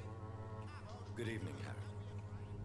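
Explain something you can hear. A man speaks a calm greeting in a low voice.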